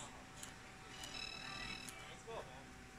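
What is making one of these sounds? A handheld game console plays short electronic beeps.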